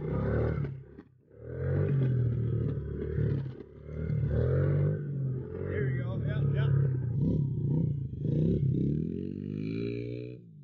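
A small motorbike engine revs loudly up close, rising and falling.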